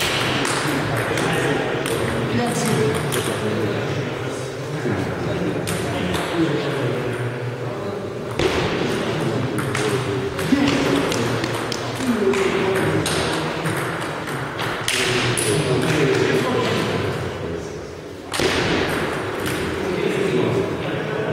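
Men talk nearby in an echoing hall.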